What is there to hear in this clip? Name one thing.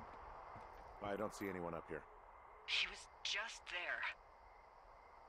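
A young man speaks close into a microphone.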